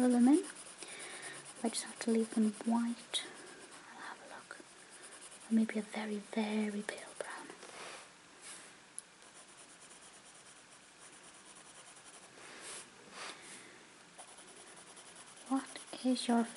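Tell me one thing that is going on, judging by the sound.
A coloured pencil scratches softly across paper.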